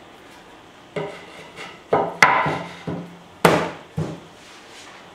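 Wooden boards knock and scrape against a potter's wheel.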